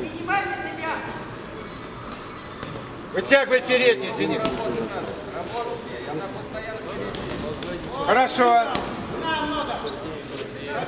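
Men shout loudly from the sides in a large echoing hall.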